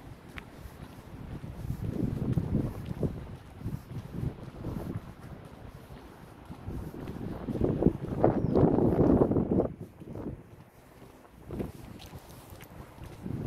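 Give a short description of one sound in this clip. Wind gusts and rumbles loudly in the open air.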